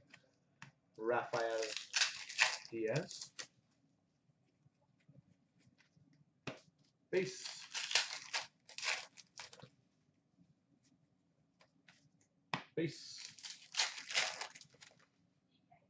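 A foil card wrapper crinkles and tears.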